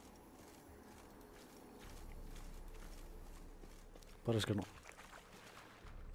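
Footsteps tread softly on the ground.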